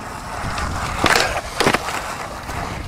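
A skateboard grinds and clacks on a ledge.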